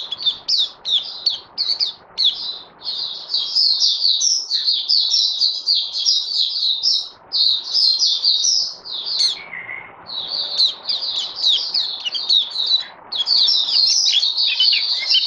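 A small bird sings a fast, chattering song of high twitters close by.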